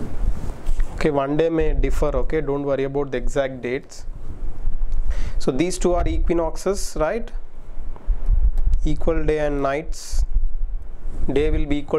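A man speaks calmly into a close microphone, explaining.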